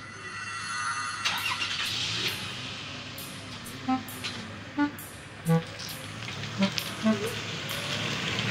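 A car engine hums as a car drives forward.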